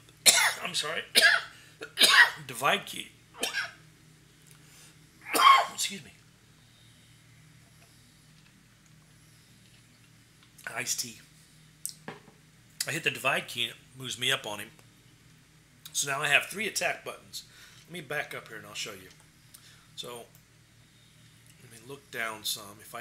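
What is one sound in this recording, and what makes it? A middle-aged man talks casually into a nearby microphone, with pauses.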